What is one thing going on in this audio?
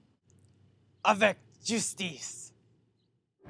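A young man speaks casually outdoors.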